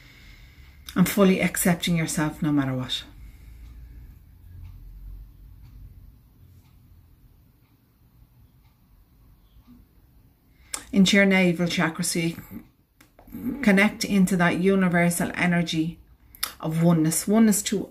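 A middle-aged woman speaks calmly and slowly close to a microphone, pausing between phrases.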